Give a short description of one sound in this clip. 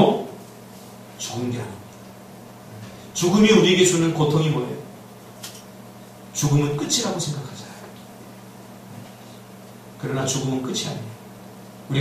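A young man preaches with emphasis through a microphone, in bursts with pauses, in an echoing room.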